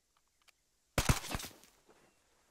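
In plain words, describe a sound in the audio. A rifle fires a single loud shot close by.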